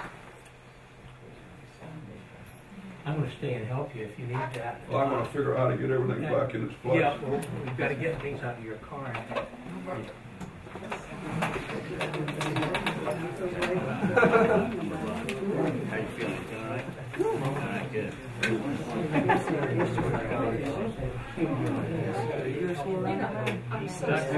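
Several elderly people chat and murmur nearby.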